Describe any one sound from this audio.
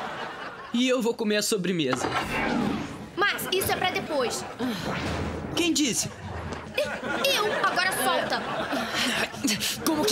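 A young man speaks.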